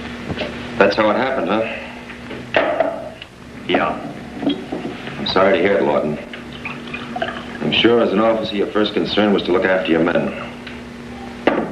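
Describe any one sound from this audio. Glass bottles clink as a man handles them.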